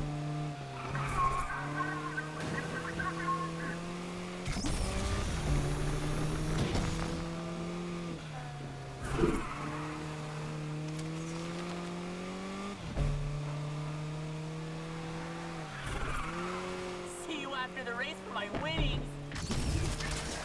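Tyres squeal as a car slides through bends.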